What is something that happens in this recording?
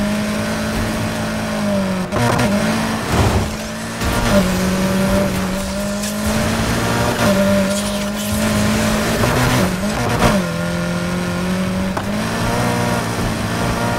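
Tyres crunch and skid over loose dirt.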